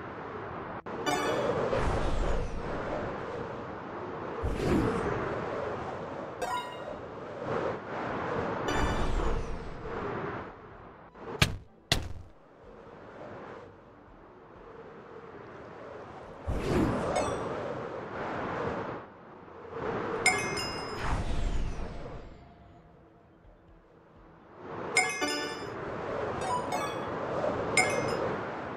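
A bright chime rings out several times.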